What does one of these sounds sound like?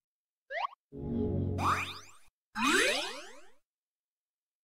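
A rising magical whoosh sounds, with a low rumble.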